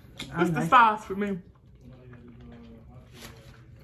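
A young woman chews and crunches food close by.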